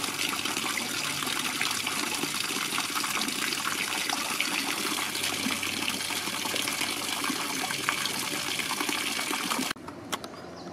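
Water splashes steadily from a fountain into a shallow pool.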